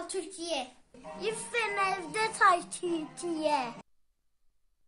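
A small child speaks excitedly close to the microphone.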